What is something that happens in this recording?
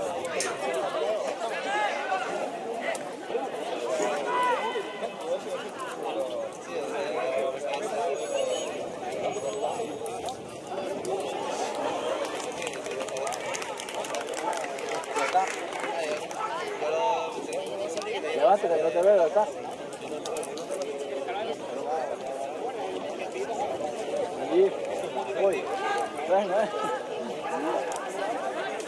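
Men shout and call out to each other across an open pitch outdoors.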